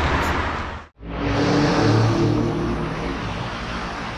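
A car engine hums as the car drives away.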